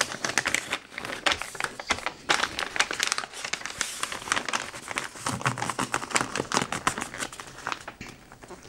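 Wrapping paper crinkles and rustles under hands pressing a parcel.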